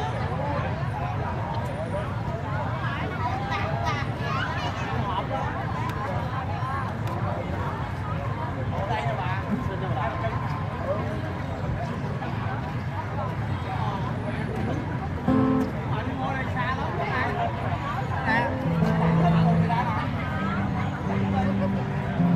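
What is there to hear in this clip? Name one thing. A crowd of men and women chatters outdoors all around.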